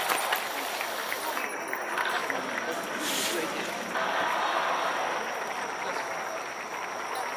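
A large stadium crowd chants and cheers steadily, heard from the stands outdoors.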